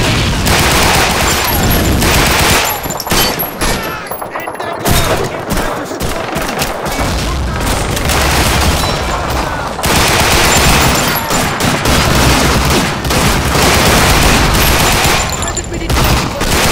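Rifles fire in sharp, rapid bursts.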